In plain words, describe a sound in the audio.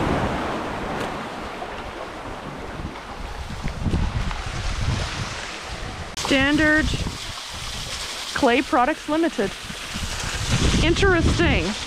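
Small waves lap gently against a stony shore.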